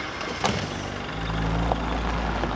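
A vehicle engine rumbles as it drives closer.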